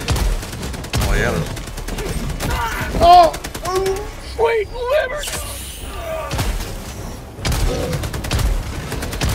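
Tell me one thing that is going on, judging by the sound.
Rapid gunfire rattles in quick bursts.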